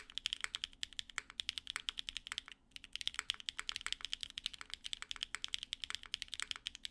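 Keys on a mechanical keyboard clack quickly and steadily under fast typing, with a brief pause.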